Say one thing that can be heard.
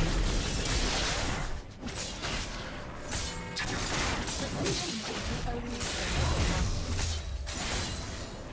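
Magic blasts and weapon strikes crackle and burst in a fast game battle.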